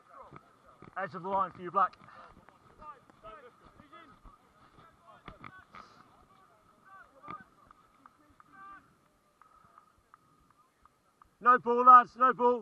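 Men shout loudly outdoors, calling out to each other.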